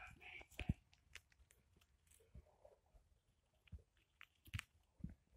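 A hamster gnaws on a peanut shell with quiet crunching and clicking.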